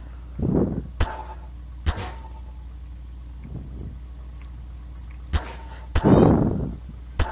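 Gunshots crack sharply a few times.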